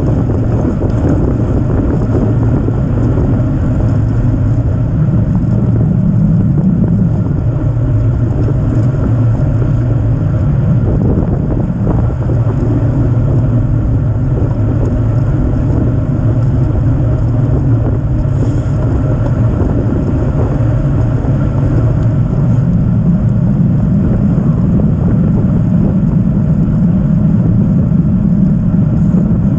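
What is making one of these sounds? Bicycle tyres hum on the road surface.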